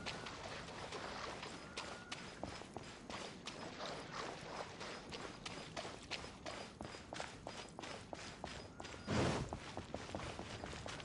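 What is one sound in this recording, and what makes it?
Footsteps patter quickly across the ground as a game character runs.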